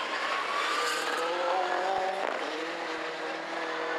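Tyres skid and scrabble on loose gravel.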